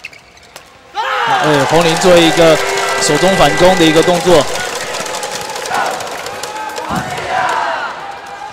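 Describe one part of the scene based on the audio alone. A crowd cheers and claps in a large echoing hall.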